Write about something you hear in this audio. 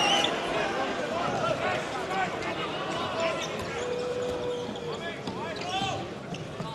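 Sports shoes squeak sharply on a hard court.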